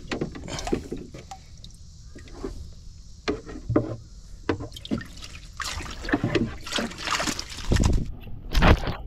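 Water sloshes and splashes as a net is dragged through a tank.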